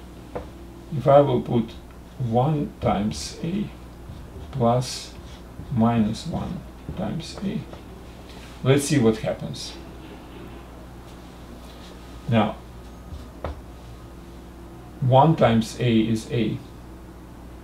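An elderly man speaks calmly, as if explaining, close by.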